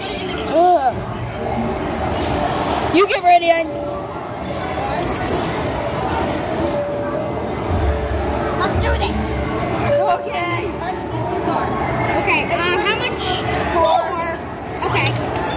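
Arcade game machines chime and play electronic music all around.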